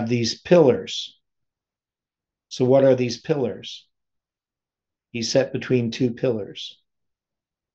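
A middle-aged man speaks calmly and slowly in short phrases, close to a microphone.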